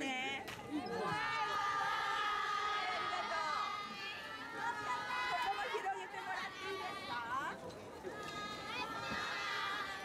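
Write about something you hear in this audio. A crowd of young women screams and chatters excitedly.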